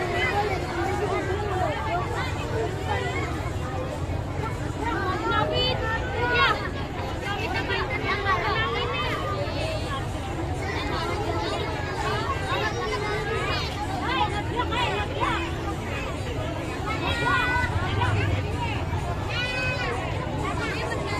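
A singer's voice rises and falls over the music through loudspeakers.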